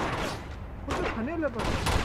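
Heavy blows thud in a scuffle.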